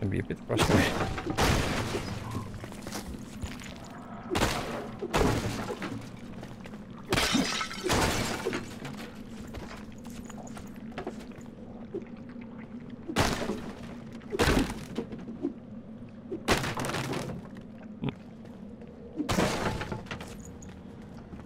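Footsteps patter quickly across a hard floor.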